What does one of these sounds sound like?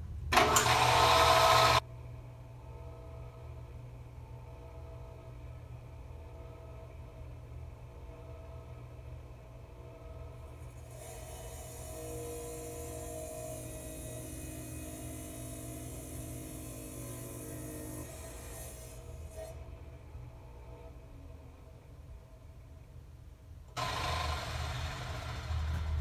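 A wet tile saw motor hums steadily.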